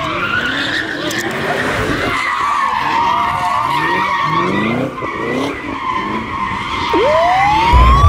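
Car tyres screech loudly in a burnout.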